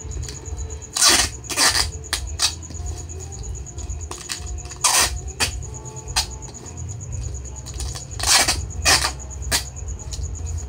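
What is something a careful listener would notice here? A plastic bag crinkles loudly in bursts.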